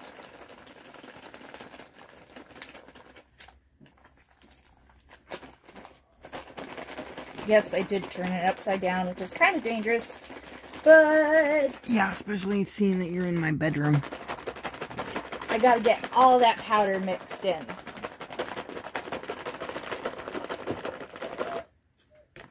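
A paper bag rustles and crinkles in hands.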